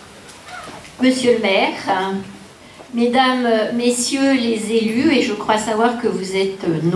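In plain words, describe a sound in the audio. A young woman speaks calmly through a microphone and loudspeakers in a large hall.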